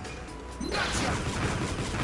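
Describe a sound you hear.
Small explosions pop.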